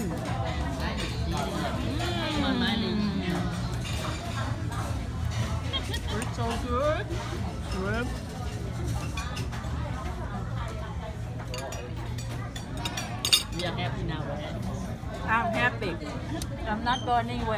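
Many people chatter in a busy room over a low hum.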